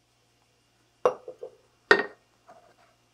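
A ceramic lid clinks onto a pot.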